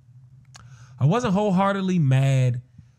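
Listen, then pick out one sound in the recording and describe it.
A man speaks loudly into a close microphone, drawing out his words.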